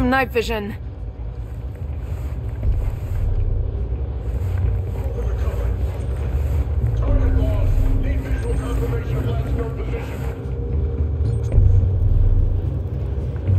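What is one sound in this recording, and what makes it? Boots tread on a metal grating.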